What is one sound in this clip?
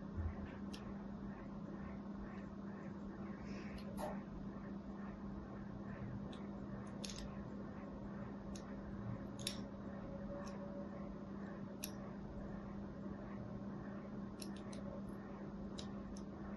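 A needle scratches and crackles against a bar of soap, in small crisp ticks.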